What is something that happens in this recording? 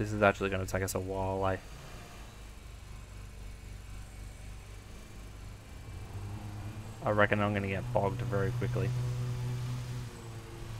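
A ride-on mower engine hums steadily.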